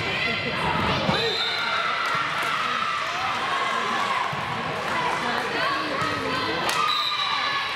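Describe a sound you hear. A volleyball thuds as it is struck.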